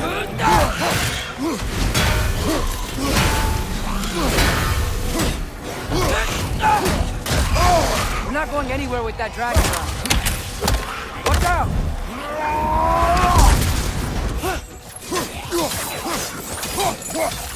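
Heavy blows and impacts thud repeatedly.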